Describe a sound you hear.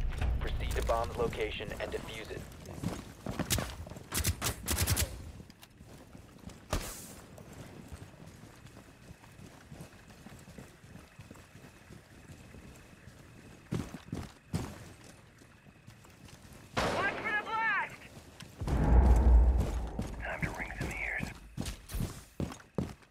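Footsteps thud on the ground at a steady walking pace.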